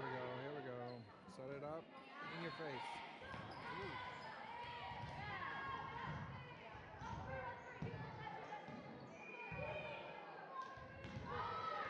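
Girls and young women shout and call out across a large echoing gym.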